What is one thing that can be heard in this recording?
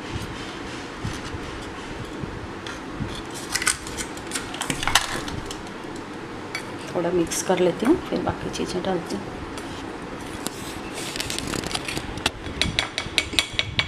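A spoon scrapes and clicks against a bowl.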